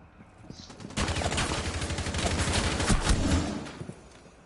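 Rapid rifle fire rattles in bursts.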